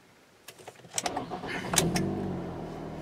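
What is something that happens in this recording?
A car engine cranks and starts up.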